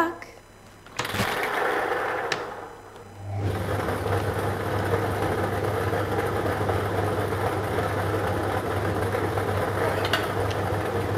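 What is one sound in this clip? Air blows and lottery balls rattle and tumble inside a machine.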